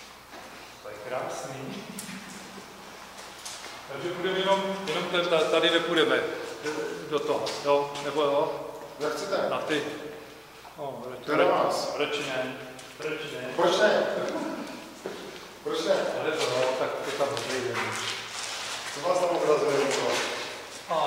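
A man talks calmly and close by, in an echoing empty room.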